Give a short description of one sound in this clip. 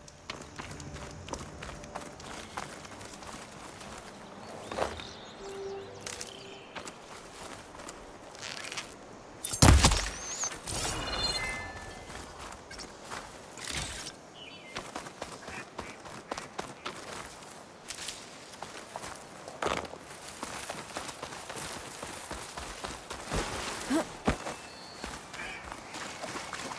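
Footsteps run quickly over soft ground.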